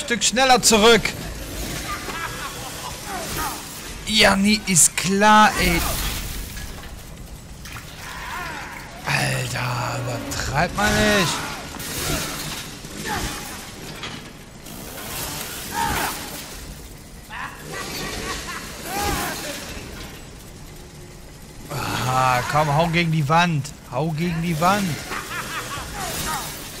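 A chainsaw engine revs and roars loudly.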